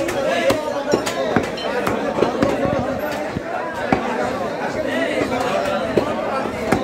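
A cleaver chops through meat onto a wooden block.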